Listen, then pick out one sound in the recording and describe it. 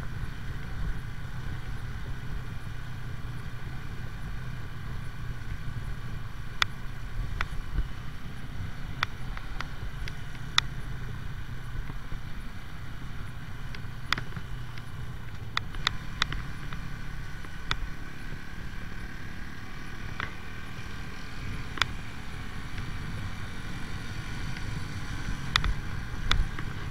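A motorcycle engine hums steadily while riding along a road.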